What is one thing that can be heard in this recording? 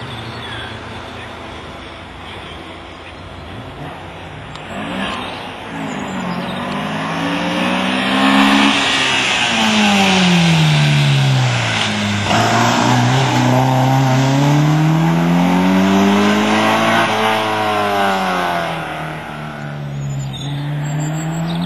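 A race-prepared saloon car's engine revs hard through the gears and roars past.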